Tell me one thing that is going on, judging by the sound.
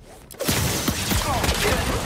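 Energy blasts crackle and zap.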